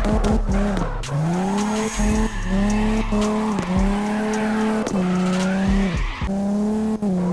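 Car tyres screech and hiss as the car slides.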